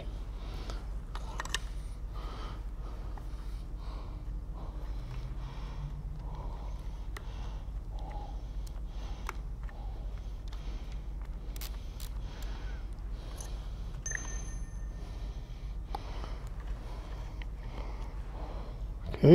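Small metal parts click and clink as they are fitted together.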